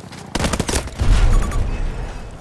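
A heavy blast booms with a deep rumble.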